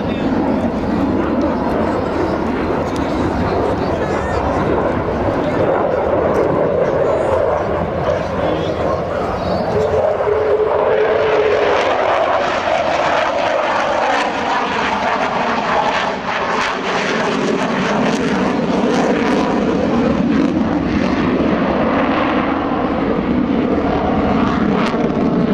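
A jet roars loudly overhead, its engine rising and falling in pitch as it turns.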